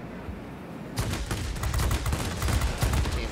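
Aircraft guns fire in rapid bursts.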